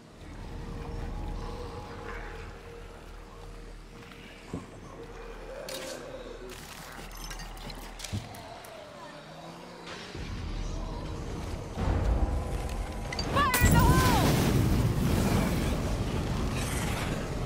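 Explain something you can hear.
Footsteps pad softly over wet ground.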